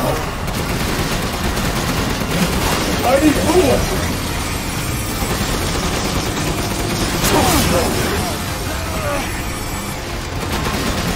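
Gunfire and explosions roar loudly and continuously.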